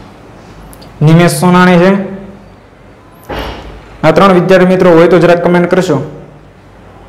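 A young man speaks calmly and close to a microphone, in short phrases.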